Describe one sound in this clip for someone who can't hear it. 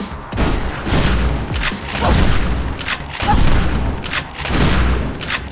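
A shotgun fires repeated loud booming shots.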